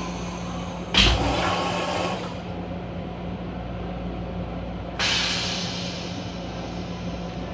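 A vacuum toilet flushes with a sudden loud whoosh and hissing rush of water.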